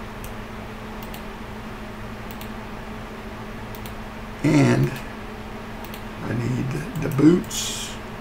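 Soft clicks sound as items are moved in a game menu.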